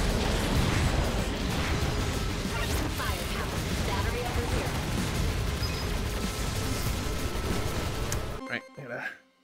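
Fast video game gunfire and explosions clatter loudly.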